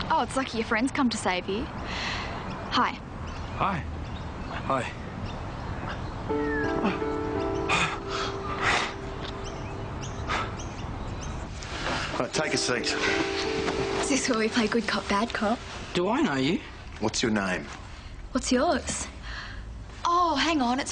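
A young woman talks nearby.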